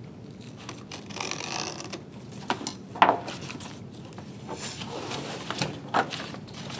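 Paper pages rustle and flutter as they are handled.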